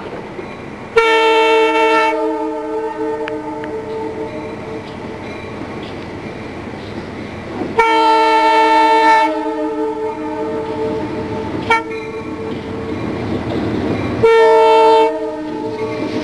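A locomotive horn blasts several times.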